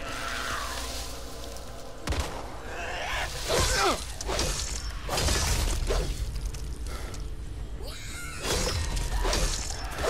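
An axe swings and thuds into bodies.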